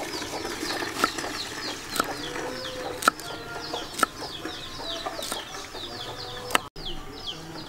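A knife chops through beans onto a wooden board with sharp knocks.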